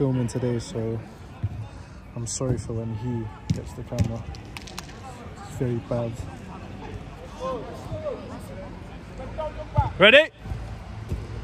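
Young men talk casually close by, outdoors.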